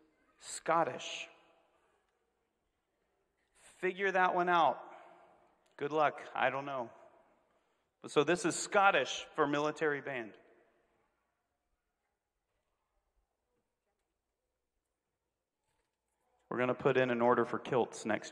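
A middle-aged man speaks in pauses into a handheld microphone, heard over a loudspeaker in a large hall.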